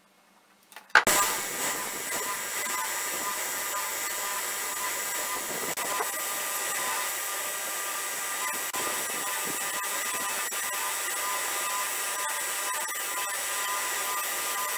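A belt sander whirs loudly and steadily.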